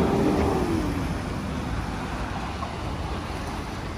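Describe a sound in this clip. A shallow stream trickles and splashes.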